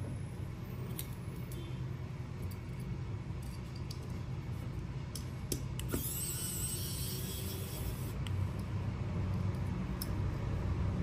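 Small tools click and tap on a rubber mat.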